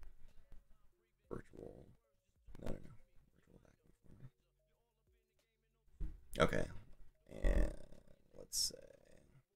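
A man talks casually into a microphone, in bursts with pauses.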